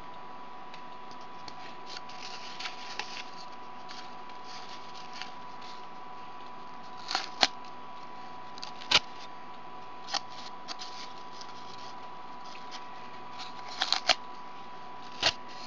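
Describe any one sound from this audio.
Stiff cardboard rustles and taps as hands handle it.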